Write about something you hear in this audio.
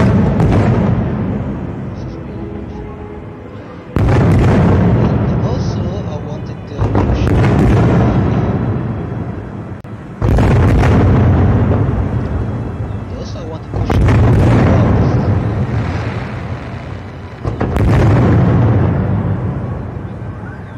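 Fireworks burst overhead with loud booming bangs that rumble and echo away.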